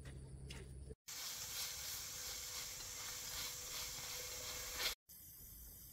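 A wood fire crackles and hisses.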